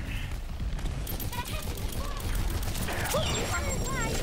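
Rapid gunfire crackles and bursts.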